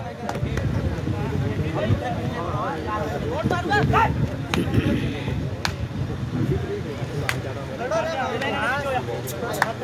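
A young man chants rapidly.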